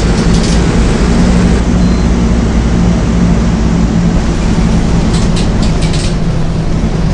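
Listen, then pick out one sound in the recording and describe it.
A bus door hisses open and shut.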